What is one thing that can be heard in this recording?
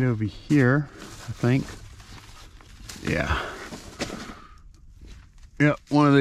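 A fabric bag rustles and scrapes as it is pulled off a shelf.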